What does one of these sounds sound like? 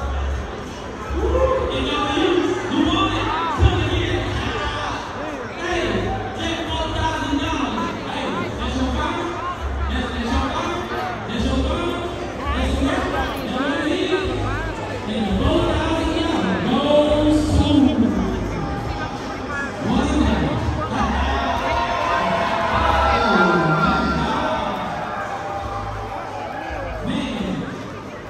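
A crowd chatters and calls out nearby.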